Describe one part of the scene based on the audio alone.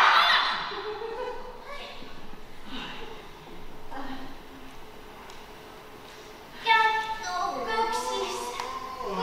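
A young woman speaks with animation, heard from a distance in a large echoing hall.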